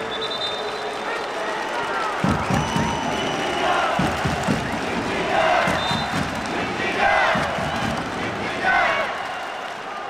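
Men call out to each other on a sports field.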